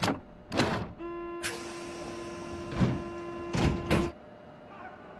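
A warning tone beeps steadily.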